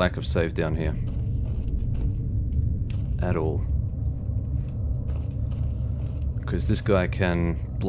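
Footsteps scuff on a concrete floor.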